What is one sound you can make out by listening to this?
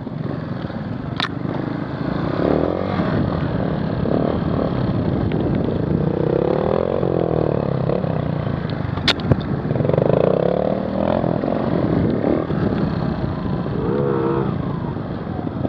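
Dirt bike engines rev and whine loudly close by.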